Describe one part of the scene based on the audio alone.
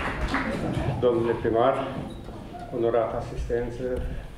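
An elderly man speaks calmly into a microphone, heard through loudspeakers in a large hall.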